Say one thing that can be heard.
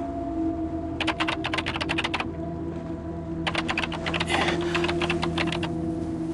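A typewriter-like machine clatters rapidly in bursts.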